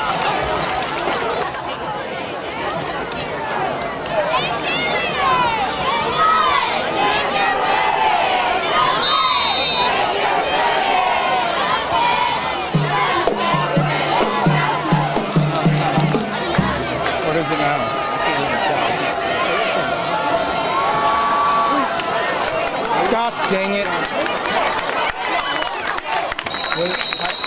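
A crowd of spectators cheers and chatters in an outdoor stadium.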